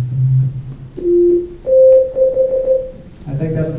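A synthesizer plays a few short, steady electronic notes.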